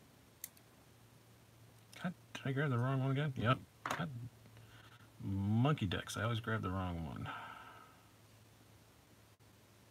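A small hex key scrapes and turns in a screw.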